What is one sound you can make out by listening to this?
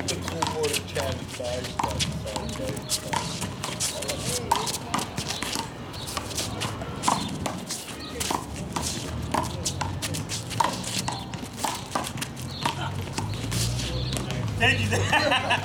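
A rubber ball smacks sharply against a wall, again and again.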